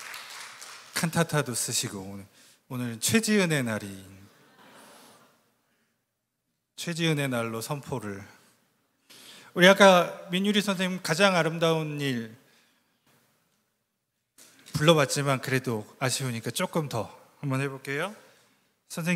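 A man speaks calmly into a microphone, heard over loudspeakers in a large echoing hall.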